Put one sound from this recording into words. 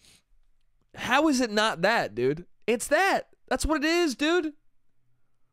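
A man speaks with animation, close into a microphone.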